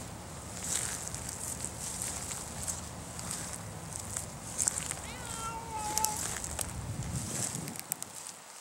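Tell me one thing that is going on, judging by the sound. Wind rumbles outdoors.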